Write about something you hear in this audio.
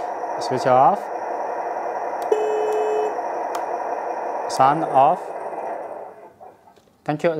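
A small electric motor whirs steadily.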